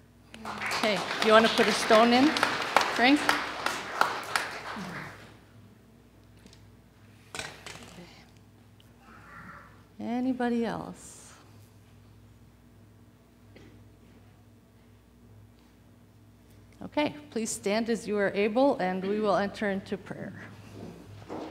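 An elderly woman speaks calmly through a microphone in a large echoing hall.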